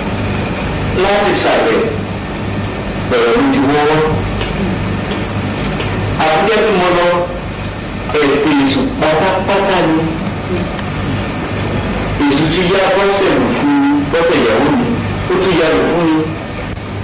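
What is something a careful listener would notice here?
A man speaks with animation in short bursts, close by.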